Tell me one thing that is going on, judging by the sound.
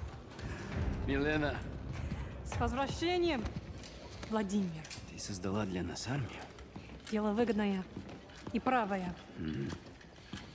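A young woman speaks warmly.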